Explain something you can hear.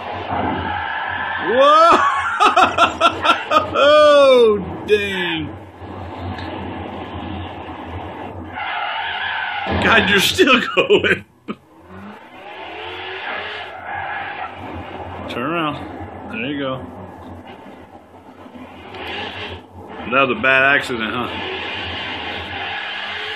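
A racing car engine revs and roars through a television speaker.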